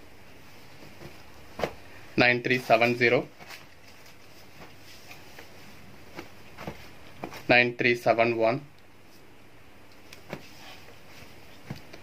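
A folded cloth is set down on a table with a soft thump.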